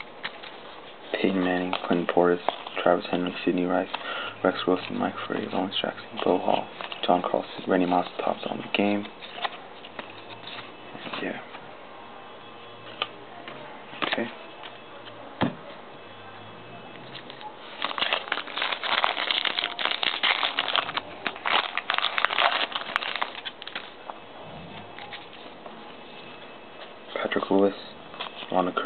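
Stiff cards rustle and slide against each other in hands.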